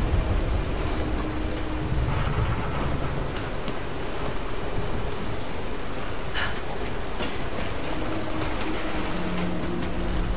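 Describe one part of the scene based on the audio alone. Hands and boots clank on a metal girder while climbing.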